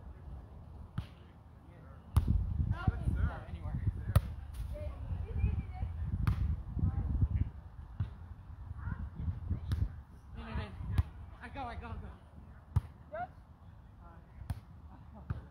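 A volleyball is struck with sharp slaps of hands.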